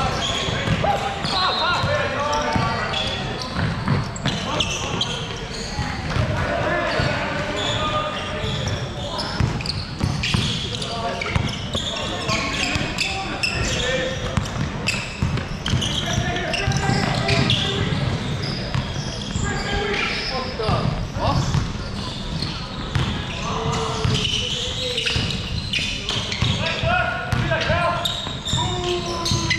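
Young men shout and call out to each other during play.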